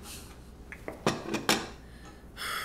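A coffee cup clinks down on a porcelain saucer.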